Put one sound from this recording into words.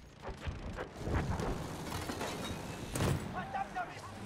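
A bomb explodes on the ground with a deep boom.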